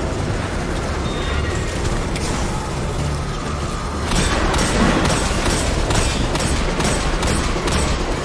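Loud blasts and explosions boom in a video game.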